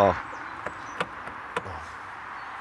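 A car's boot lid thuds shut.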